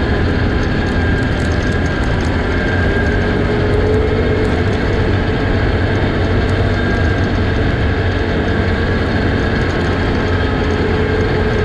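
Tyres rumble and crunch over a bumpy dirt road.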